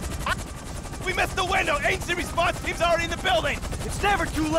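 A man speaks urgently into a handheld radio.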